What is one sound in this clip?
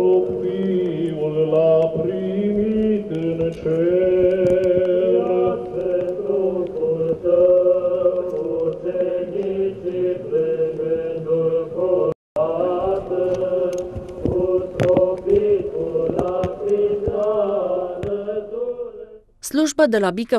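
A crowd of men and women sing a slow chant outdoors.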